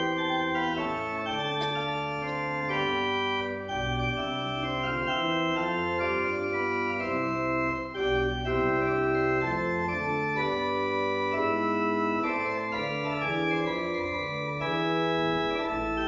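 A mixed choir sings together in a large echoing hall.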